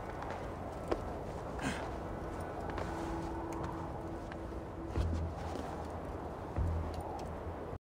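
Hands and boots scrape and knock against stone while climbing.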